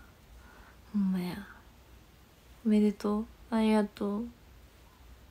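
A young woman speaks briefly and animatedly close by.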